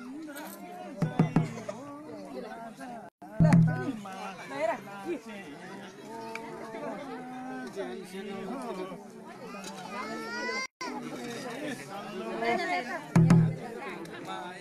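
Drummers beat hand drums.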